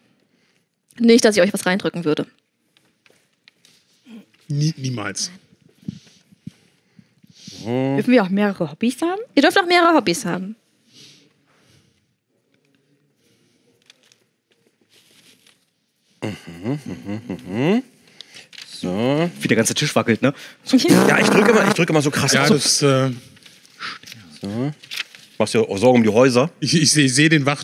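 Adult men talk with animation, close to a microphone.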